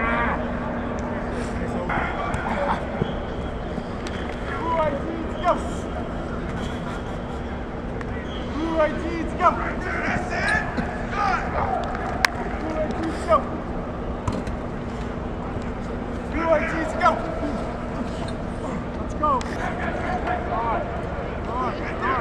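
A man shouts encouragement, echoing in a large open stadium.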